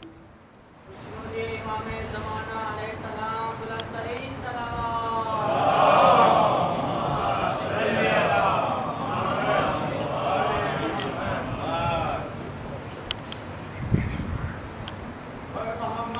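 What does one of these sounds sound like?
A middle-aged man talks loudly.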